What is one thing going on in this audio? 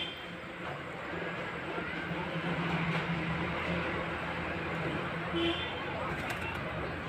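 Pigeons coo softly nearby.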